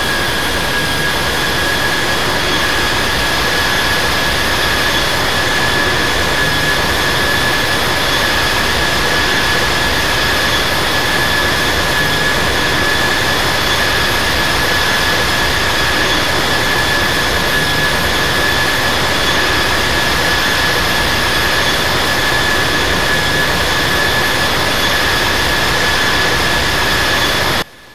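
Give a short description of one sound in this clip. Jet engines roar steadily with a high whine.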